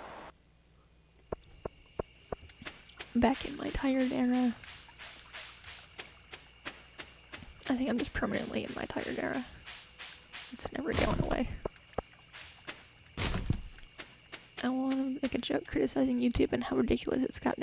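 Footsteps tap quickly along a path.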